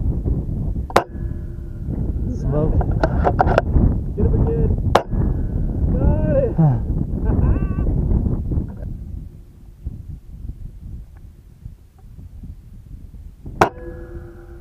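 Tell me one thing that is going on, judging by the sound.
A rifle fires loud, sharp shots that ring out briefly.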